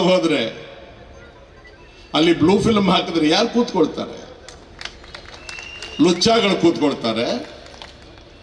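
An elderly man speaks forcefully into a microphone, heard through loudspeakers outdoors, in short bursts with pauses.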